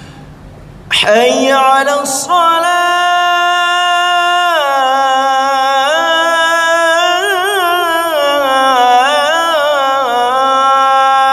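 A man chants loudly into a microphone in a long, melodic call, heard through a loudspeaker with echo.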